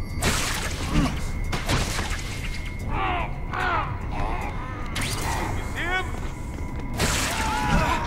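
Web lines shoot out with sharp whooshing snaps.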